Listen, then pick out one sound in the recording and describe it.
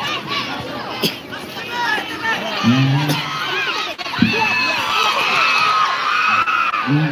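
A ball is kicked with a thud.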